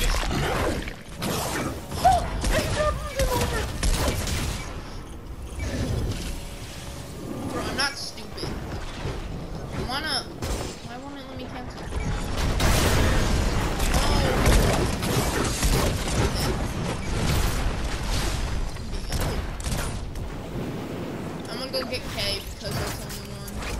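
Electronic game sound effects whoosh and crackle.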